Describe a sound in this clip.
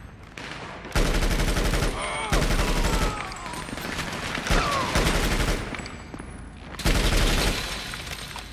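Rapid gunfire rattles in loud bursts inside a large echoing hall.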